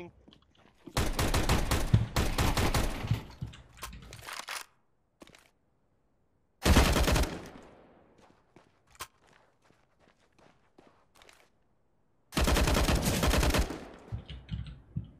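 Gunshots ring out loudly in quick bursts.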